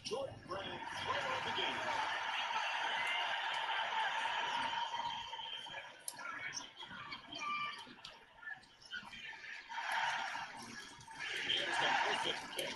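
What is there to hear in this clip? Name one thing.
Game crowd noise cheers and roars through small tinny speakers.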